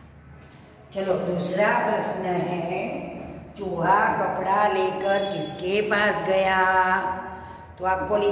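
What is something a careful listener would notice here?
A woman speaks clearly and with animation close by.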